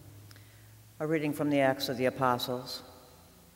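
An elderly woman speaks calmly through a microphone in an echoing hall.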